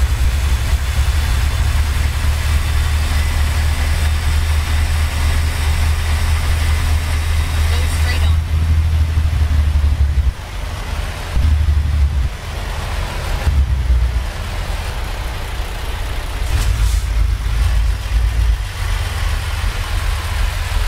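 A truck engine rumbles low and steady, rising and falling with the throttle.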